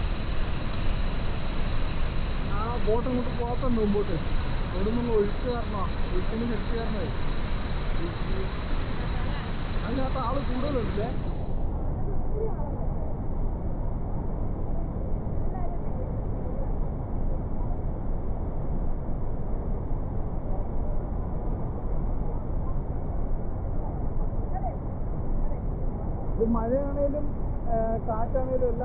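A waterfall roars steadily outdoors in wind.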